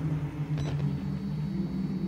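Rain patters against a window.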